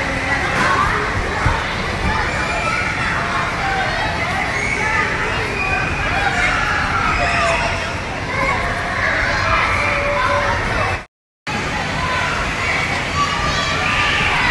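Young children shout and squeal excitedly in a large echoing hall.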